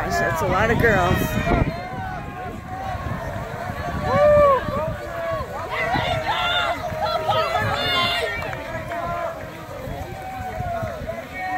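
A large crowd of young women shouts and cheers outdoors.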